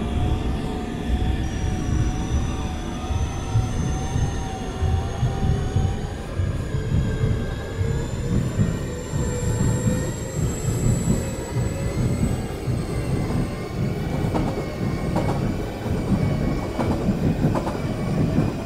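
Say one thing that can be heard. An electric train motor whines, slowly rising in pitch.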